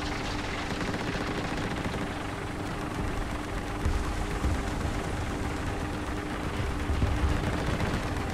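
A tank engine rumbles and roars steadily.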